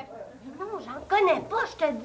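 A young boy speaks nearby.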